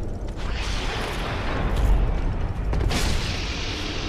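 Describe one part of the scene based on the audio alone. A sword strikes metal with a sharp clang.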